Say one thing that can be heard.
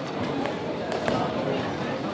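Gloved punches land with sharp thuds.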